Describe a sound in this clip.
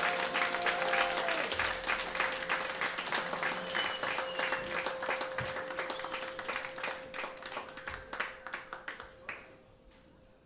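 A band plays loudly on stage.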